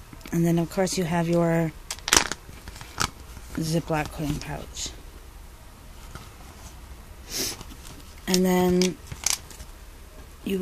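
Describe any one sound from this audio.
Paper rustles and taps as hands fold and handle it.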